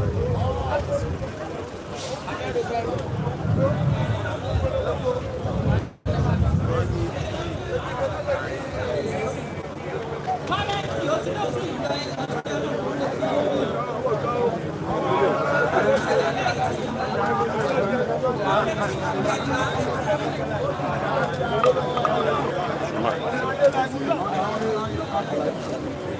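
A crowd of men and women talks and murmurs close by outdoors.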